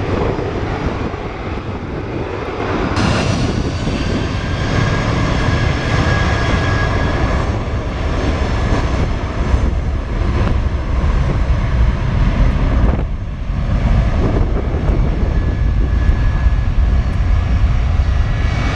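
Jet engines roar and whine steadily as airliners taxi nearby.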